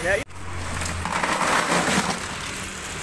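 Ice cubes clatter as they tumble into a plastic tub.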